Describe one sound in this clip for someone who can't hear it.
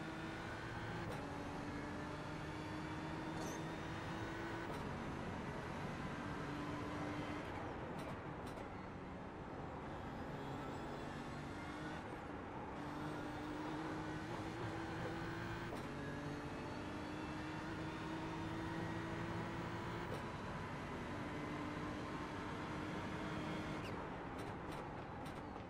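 A racing car engine roars loudly, rising in pitch through each gear and dropping with each shift.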